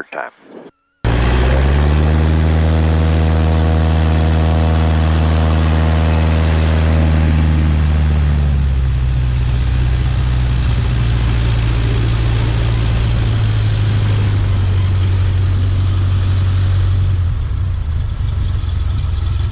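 Wind rushes past a moving plane.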